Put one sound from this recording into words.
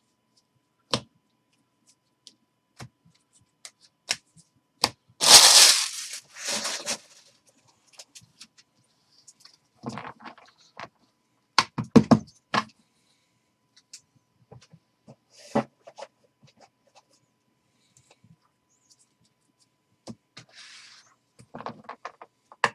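Trading cards flick and tap against each other as hands shuffle through a stack.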